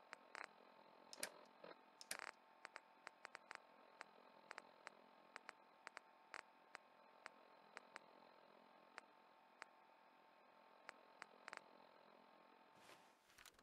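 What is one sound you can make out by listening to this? A game menu ticks with quick soft clicks as items scroll.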